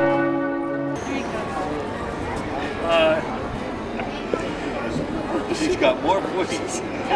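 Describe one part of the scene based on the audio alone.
A man speaks casually close by, outdoors.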